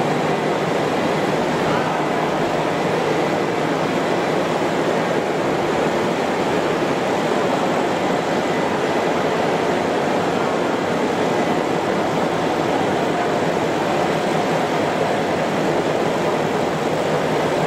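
Industrial machinery hums and whirs steadily.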